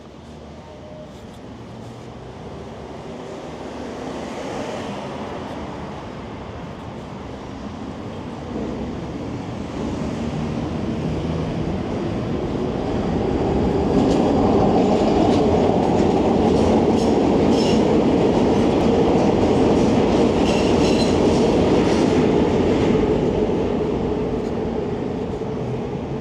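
Wind rushes and buffets past a moving electric bike.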